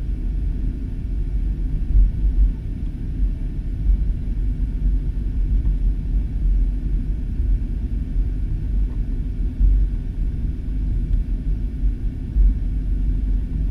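Wheels rumble over the taxiway.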